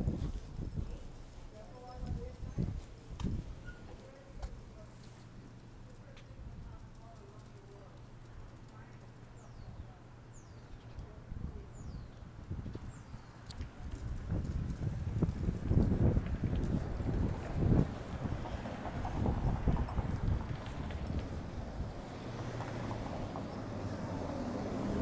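Car traffic passes on a city street outdoors.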